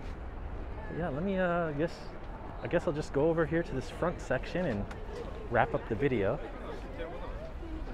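Men, women and children talk nearby in a crowd.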